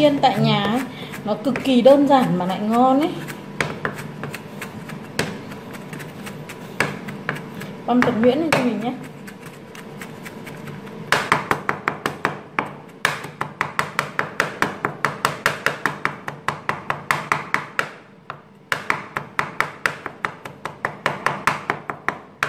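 A knife chops rapidly on a wooden cutting board.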